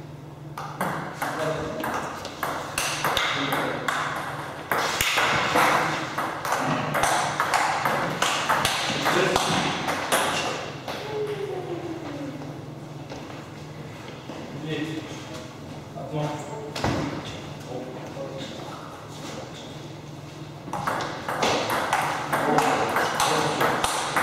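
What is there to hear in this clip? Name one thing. A ping-pong ball clicks back and forth between paddles and a table in a quick rally.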